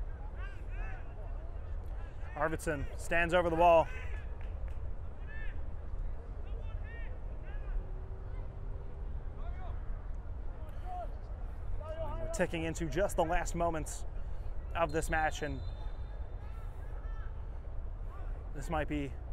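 Young players shout to each other from a distance across an open field.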